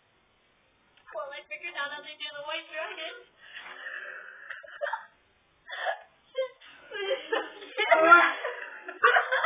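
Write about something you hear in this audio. A young woman laughs hard, close by.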